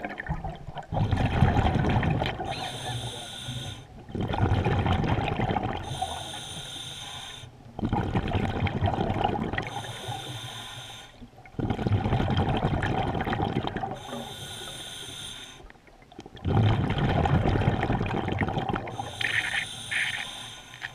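A diver breathes slowly and loudly through a scuba regulator underwater.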